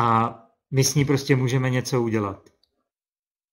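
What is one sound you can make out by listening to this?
A man speaks calmly through an online call.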